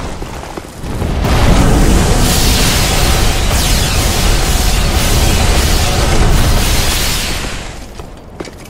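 A deep magical blast roars and rumbles.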